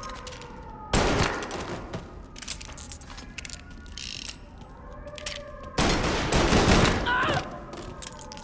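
Gunshots fire loudly in a hallway with a short echo.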